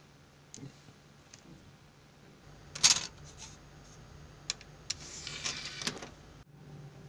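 A plastic disc case clicks and rattles as it is handled.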